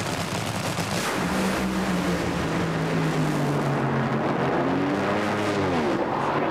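Dragster engines roar deafeningly as the cars launch and race away.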